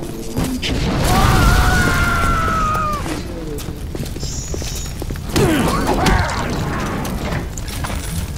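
A man screams in pain.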